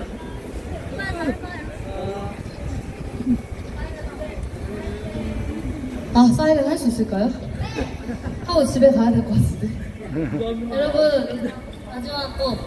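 Young women talk and chat nearby.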